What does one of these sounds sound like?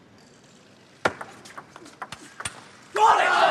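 A ping-pong ball clicks back and forth off paddles and a table.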